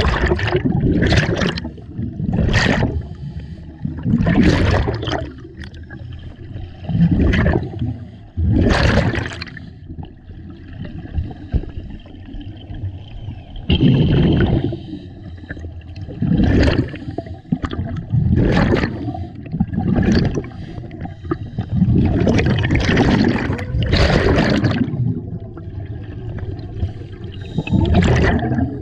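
Exhaled bubbles gurgle and rumble as they rise.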